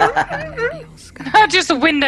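A man laughs through a microphone on an online call.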